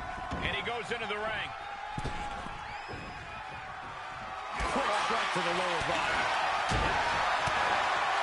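A crowd cheers loudly in a large arena.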